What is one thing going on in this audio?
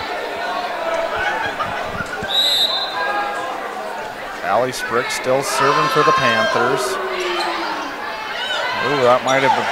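A crowd murmurs and cheers in a large echoing gym.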